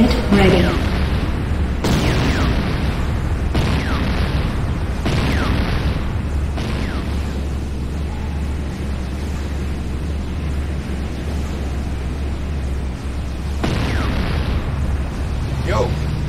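Electricity crackles and buzzes in repeated bursts.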